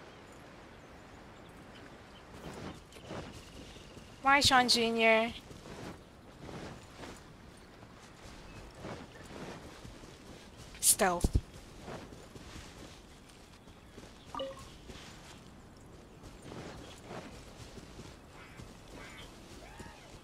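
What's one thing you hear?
Footsteps rustle through grass at a steady running pace.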